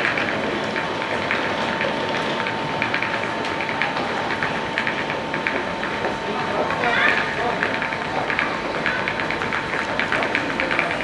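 Footsteps tap on a hard platform nearby.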